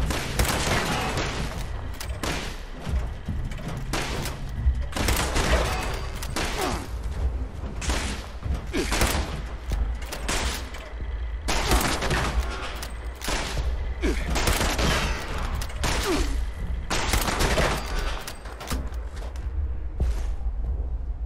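A pistol fires shot after shot.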